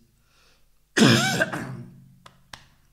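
A man coughs loudly close to a microphone.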